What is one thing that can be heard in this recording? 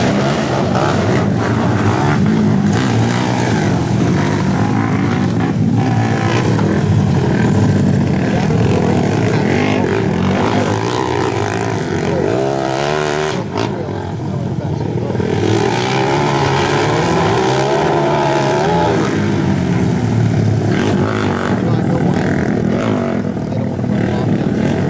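Quad bike engines roar and buzz loudly.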